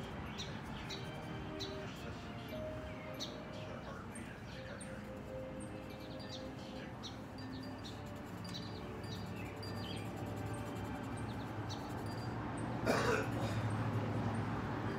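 A felt marker squeaks and scratches softly on paper.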